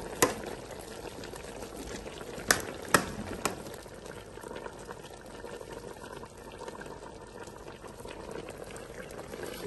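Soup simmers and bubbles in a metal pot.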